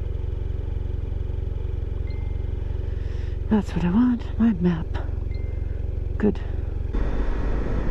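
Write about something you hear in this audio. A motorcycle engine idles with a low steady rumble.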